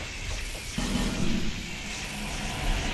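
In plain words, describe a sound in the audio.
A burst of flame roars briefly.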